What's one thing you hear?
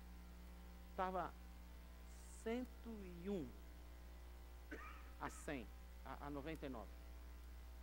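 An older man speaks with animation through a microphone and loudspeakers in a large hall.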